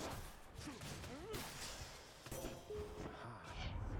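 A magical burst chimes and whooshes.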